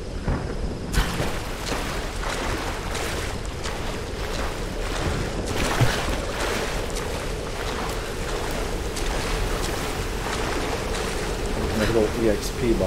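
Water splashes steadily as someone wades through it.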